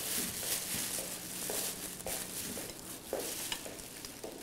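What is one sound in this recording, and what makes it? Dishes clink softly as a man handles them.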